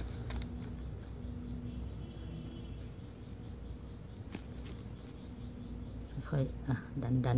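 Folded paper crinkles under fingers.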